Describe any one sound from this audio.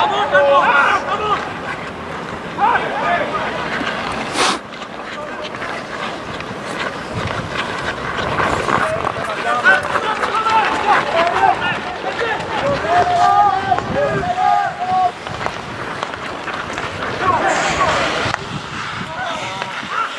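Players shout to each other across an outdoor ice rink.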